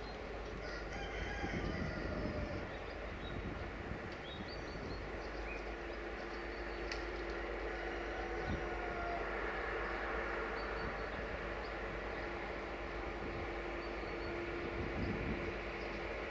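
A diesel engine idles steadily nearby.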